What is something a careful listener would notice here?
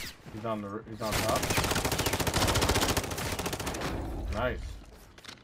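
An automatic gun fires rapid bursts of shots at close range.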